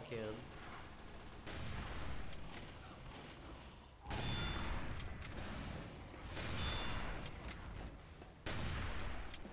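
A sniper rifle fires with a loud boom.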